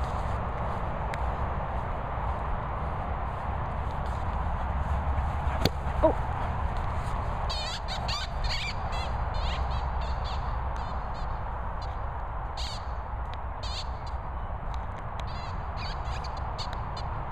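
A dog's paws patter across grass as it runs.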